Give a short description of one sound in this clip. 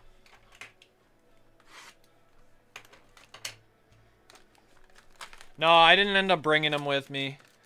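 Plastic wrapping crinkles as a pack is handled.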